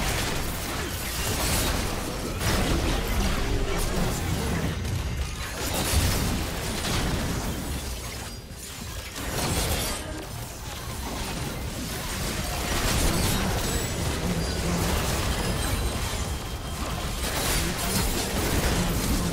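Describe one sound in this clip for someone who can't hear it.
Spell blasts, clashing weapons and explosions of a video game battle crackle and boom throughout.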